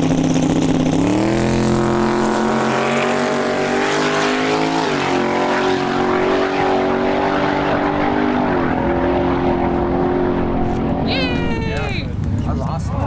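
A race car engine roars as the car launches and speeds away, climbing through the gears.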